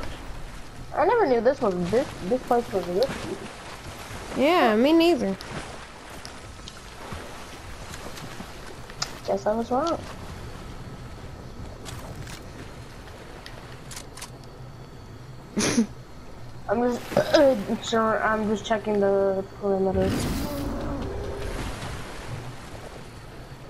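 Water splashes softly as a swimmer paddles along.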